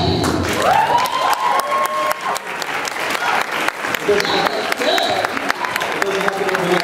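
A crowd claps and applauds in a large echoing hall.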